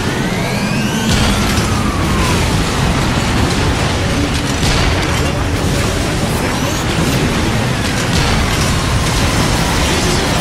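A rocket launcher fires with a sharp whoosh.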